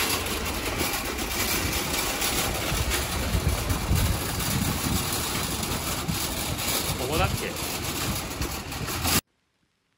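A shopping cart rattles as it rolls over wet pavement.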